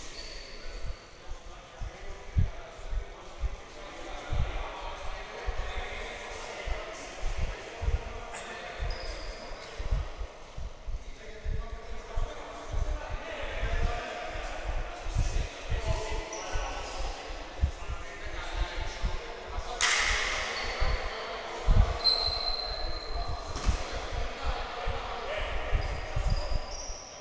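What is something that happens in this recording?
Basketballs bounce on a wooden floor in a large echoing hall.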